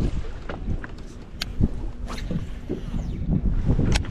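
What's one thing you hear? A fishing rod swishes through the air in a cast.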